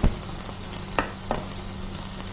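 A teapot knocks lightly against a tray.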